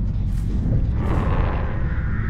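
Crows caw as they scatter.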